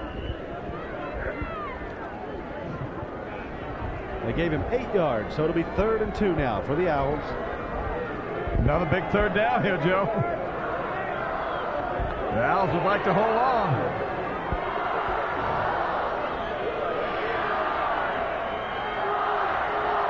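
A stadium crowd murmurs and cheers in the distance.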